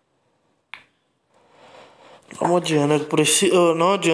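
Billiard balls knock together and drop into a pocket.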